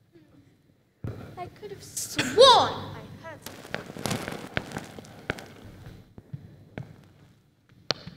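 A young girl calls out loudly, heard from across a hall.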